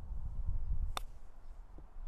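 A golf club strikes a ball out of sand with a sharp click.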